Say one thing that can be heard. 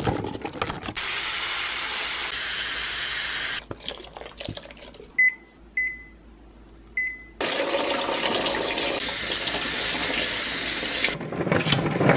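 Water runs and splashes into a plastic bowl.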